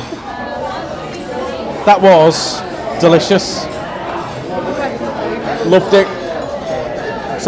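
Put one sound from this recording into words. Many people chatter in the background of a busy room.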